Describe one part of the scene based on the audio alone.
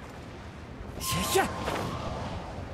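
A character lands on a tiled roof with a thud.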